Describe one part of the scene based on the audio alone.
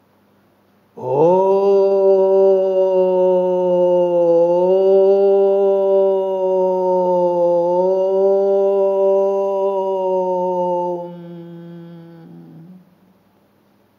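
An elderly man chants a long, steady held note.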